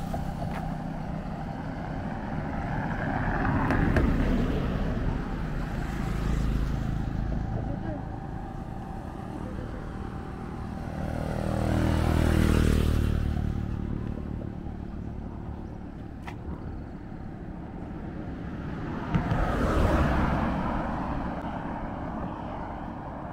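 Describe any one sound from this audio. Cars and a motorbike drive past on a road, each growing louder and then fading.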